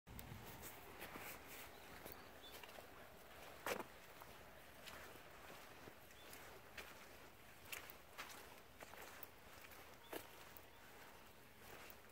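Footsteps crunch on a dirt path outdoors.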